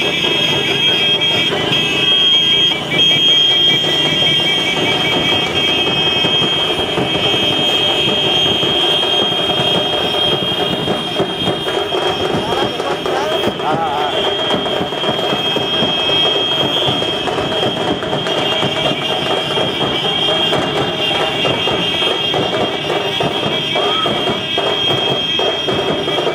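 Many motorcycle engines hum steadily close by.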